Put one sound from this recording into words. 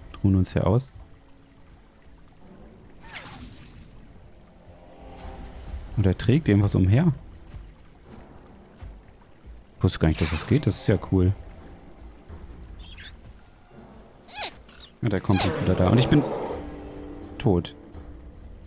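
A large crocodile growls and roars loudly.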